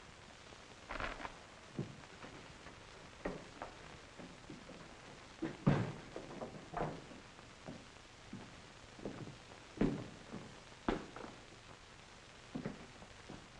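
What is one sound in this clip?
Glasses and bottles knock and clink on a wooden bar.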